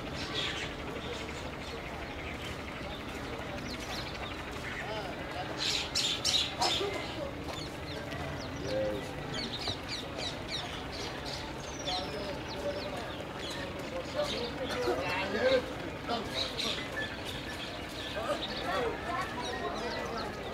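Distant voices of men and women murmur outdoors.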